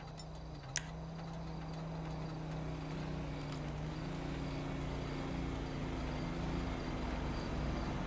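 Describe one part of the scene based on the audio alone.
A car engine idles steadily nearby.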